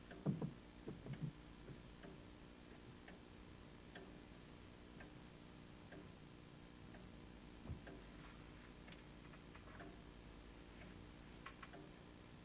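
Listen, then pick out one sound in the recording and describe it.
Soft footsteps cross a quiet room.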